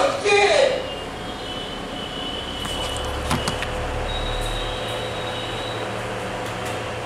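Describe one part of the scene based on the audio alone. A printer's stepper motors whine with a steady, high tone.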